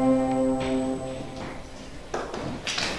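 An electronic keyboard plays a few sustained notes.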